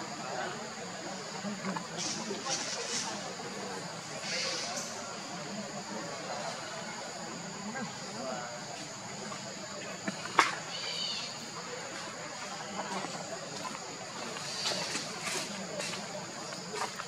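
A baby monkey munches and smacks softly on a banana.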